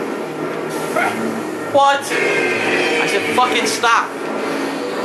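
A lightsaber swooshes sharply through the air.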